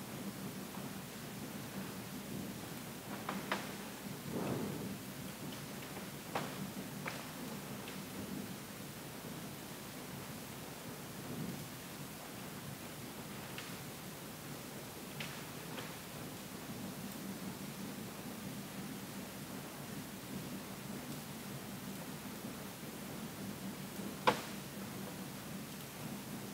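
A low engine hum drones steadily.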